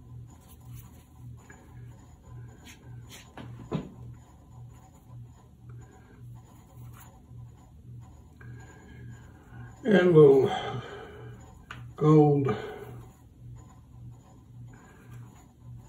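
A paintbrush swirls and dabs softly in wet paint.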